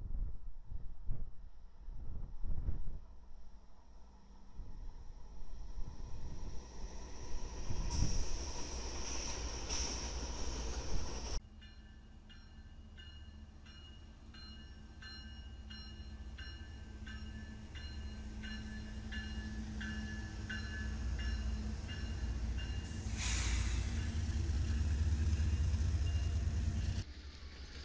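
Train wheels clack over the rail joints.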